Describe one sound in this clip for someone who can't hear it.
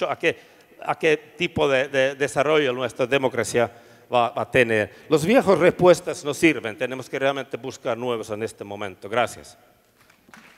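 A middle-aged man speaks calmly through a microphone.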